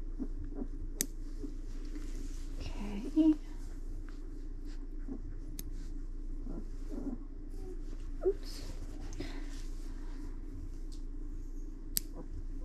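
Nail clippers click sharply as they snip a puppy's claws.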